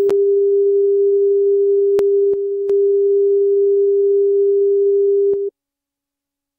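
A steady, mid-pitched test tone sounds and then cuts off.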